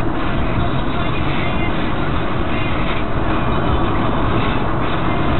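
A car drives with a steady rumble of tyres on the road.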